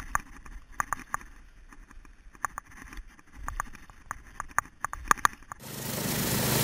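Ice skates scrape and click over ice.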